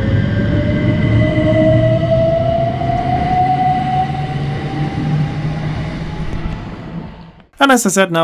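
An electric train pulls away, its motor whining and rising in pitch.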